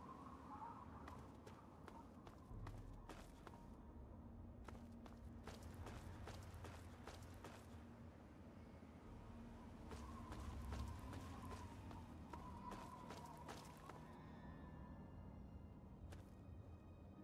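Footsteps crunch over rubble at a steady pace.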